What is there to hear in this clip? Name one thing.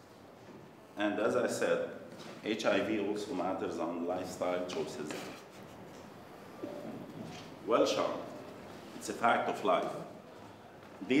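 A man speaks calmly to a room, close by.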